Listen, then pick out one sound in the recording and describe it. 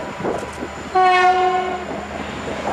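A locomotive horn sounds a short blast.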